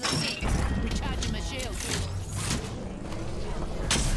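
A shield recharger whirs and hums in a video game.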